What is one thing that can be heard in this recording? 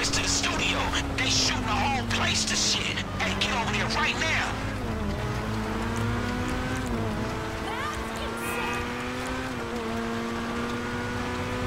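A car engine hums steadily and rises and falls in pitch.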